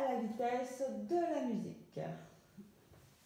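A woman speaks cheerfully close by in a room.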